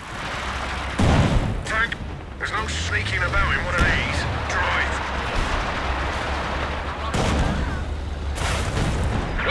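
Explosions boom and rumble in a battle.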